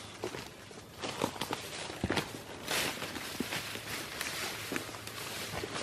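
Footsteps crunch and rustle through undergrowth close by.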